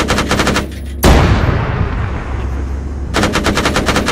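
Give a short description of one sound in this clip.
A large explosion booms and rumbles away.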